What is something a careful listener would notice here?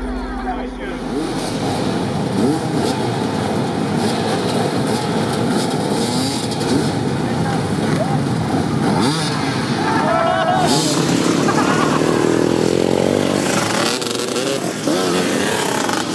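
Motorcycles accelerate away one after another.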